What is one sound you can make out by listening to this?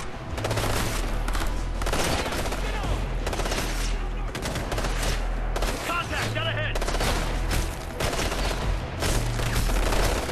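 Bullets smack into concrete cover.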